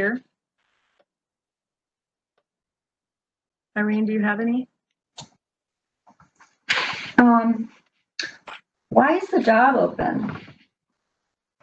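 A woman speaks over an online call, pausing between phrases.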